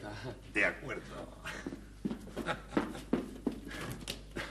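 Heeled footsteps tap on a hard floor and move away.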